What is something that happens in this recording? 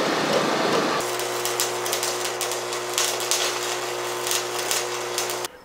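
An arc welder crackles and sputters in bursts.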